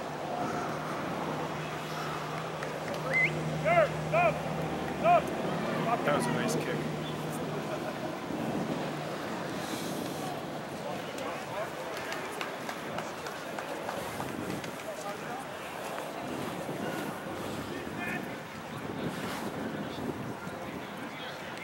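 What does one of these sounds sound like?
Spectators chatter and cheer from the sideline.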